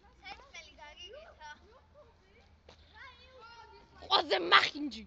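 Young children chatter playfully.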